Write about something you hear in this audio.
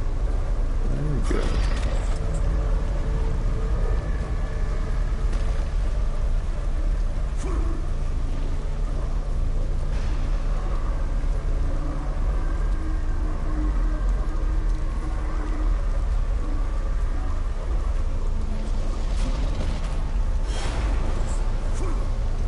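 Thunder cracks and rumbles loudly.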